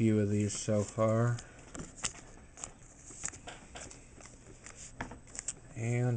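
A thin plastic sleeve crinkles softly.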